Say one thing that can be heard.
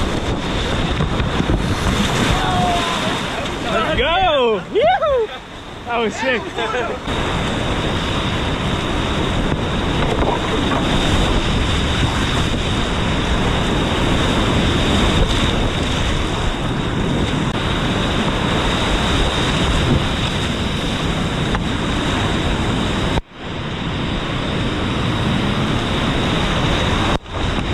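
White water rushes and roars loudly close by, outdoors.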